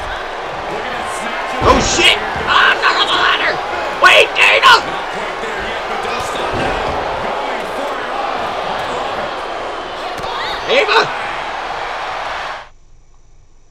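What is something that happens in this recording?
A large arena crowd roars and cheers steadily.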